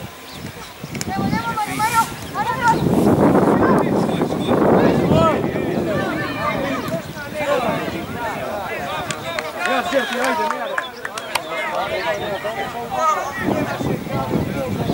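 Young players shout and call to each other across an open outdoor field.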